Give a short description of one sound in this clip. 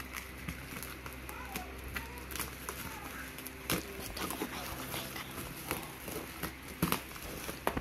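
Bubble wrap crinkles and rustles under hands.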